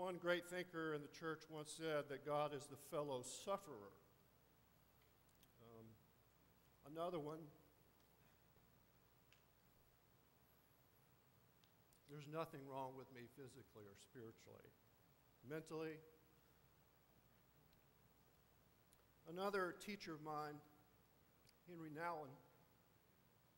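An older man speaks calmly through a microphone in a large echoing hall, with long pauses.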